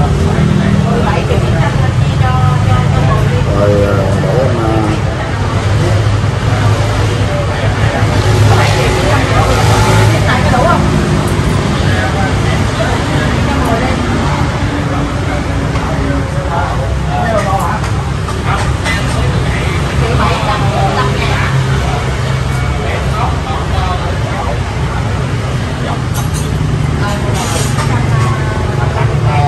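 Men talk nearby in conversation.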